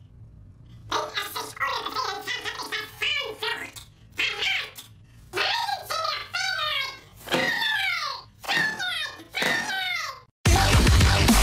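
An elderly man shouts furiously.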